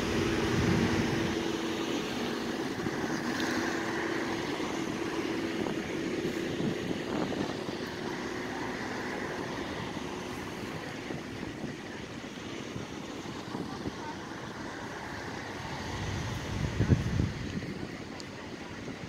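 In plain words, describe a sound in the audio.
Cars drive slowly past, one after another, close by.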